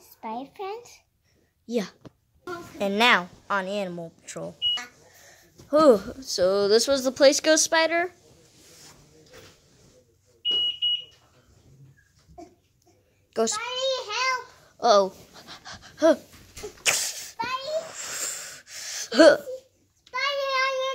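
A young girl talks playfully in a high voice close by.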